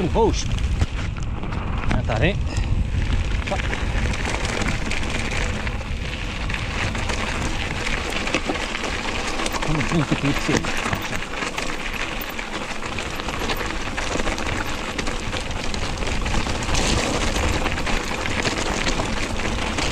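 Bicycle tyres crunch and rattle over loose gravel and stones.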